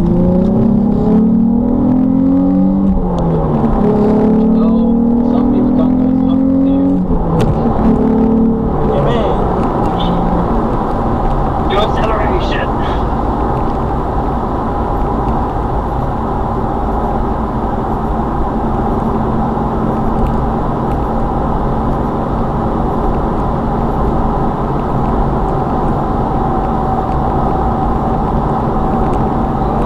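Tyres roar steadily on a motorway from inside a moving car.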